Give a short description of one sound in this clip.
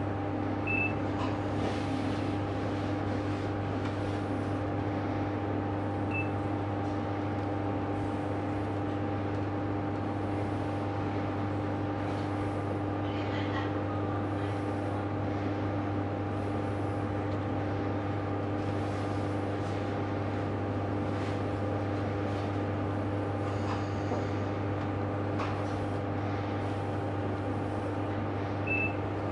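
Another train rolls slowly past outside.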